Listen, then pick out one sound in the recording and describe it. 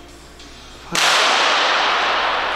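A pistol shot cracks loudly.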